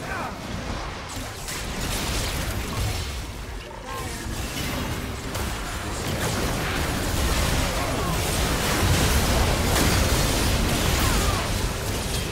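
Magic blasts, zaps and impacts crackle and boom in a fast, busy fight.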